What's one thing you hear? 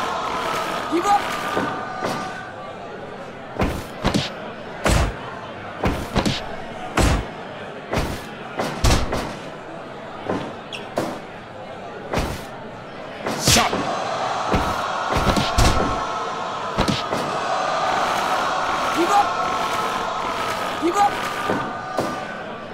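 Heavy blows and slams thud on a wrestling ring mat.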